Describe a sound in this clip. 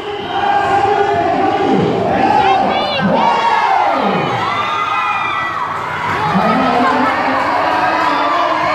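A large crowd shouts and cheers loudly under an echoing roof.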